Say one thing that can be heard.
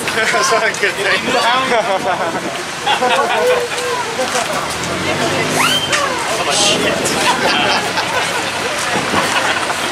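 A man talks and laughs near the microphone.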